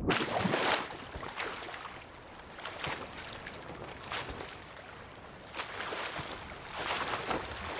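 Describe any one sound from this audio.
Waves splash and lap against a wooden ship's hull.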